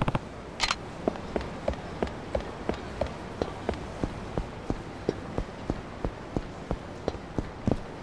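Footsteps slap quickly on pavement as two people run.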